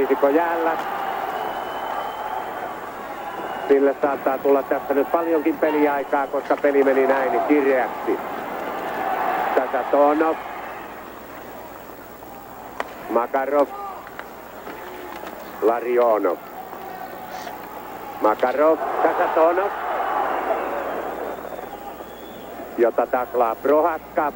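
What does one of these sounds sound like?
A large crowd cheers and murmurs in an echoing arena.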